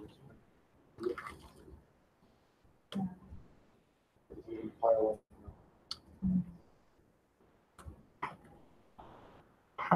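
A man talks calmly, pausing often.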